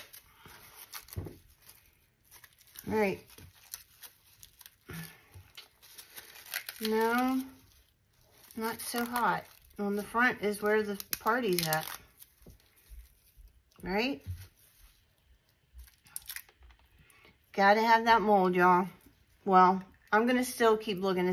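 Brittle material crackles and rustles as it is crumbled by hand.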